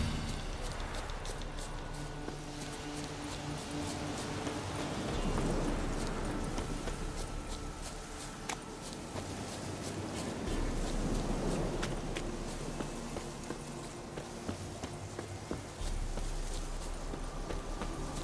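Footsteps run over grass and dirt.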